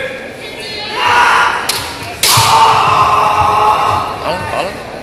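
Fighters let out long, loud shouts that echo through a large hall.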